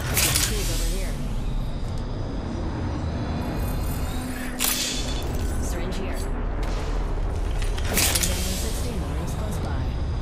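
A small healing device hisses and whirs as it is used.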